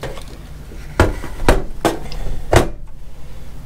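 A plastic device is set down on a table with a few knocks.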